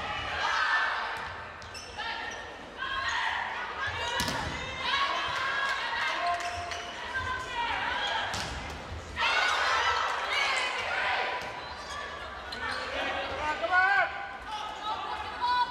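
A large crowd cheers and chants in a big echoing indoor hall.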